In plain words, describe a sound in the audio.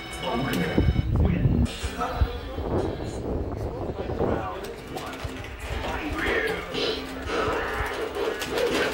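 An arcade fighting game plays music and effects through a loudspeaker.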